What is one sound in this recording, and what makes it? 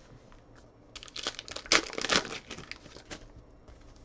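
A foil pack is torn open with a crinkling rip.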